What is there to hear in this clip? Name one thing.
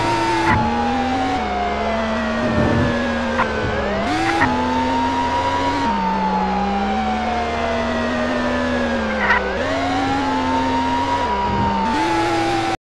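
A police siren wails, slowly rising and falling.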